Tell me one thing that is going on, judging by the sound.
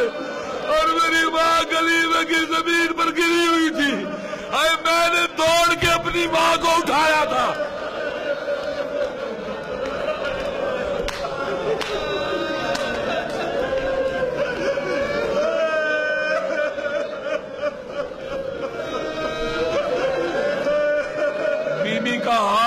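An elderly man preaches loudly and with passion through a microphone.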